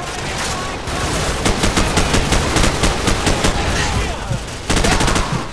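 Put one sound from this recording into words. Rifles fire in rapid bursts nearby.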